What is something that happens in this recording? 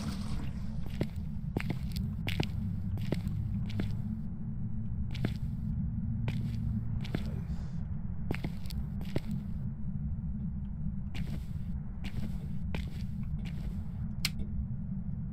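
Footsteps walk slowly across a hard floor.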